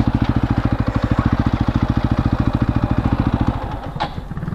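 A single-cylinder sport motorcycle engine runs while riding.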